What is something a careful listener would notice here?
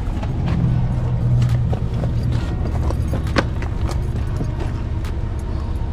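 A plastic tarp rustles and crinkles.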